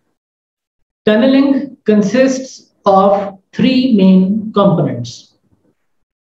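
A man speaks calmly into a close microphone, as if lecturing.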